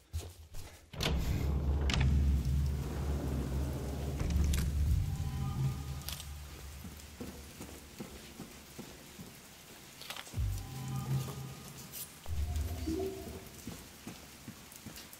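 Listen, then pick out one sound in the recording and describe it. Heavy rain pours outdoors.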